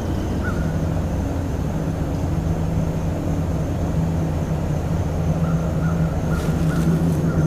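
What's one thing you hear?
A fishing reel whirs softly as line is wound in.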